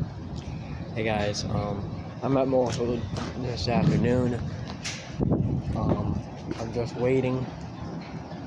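A young man talks casually and close to the microphone.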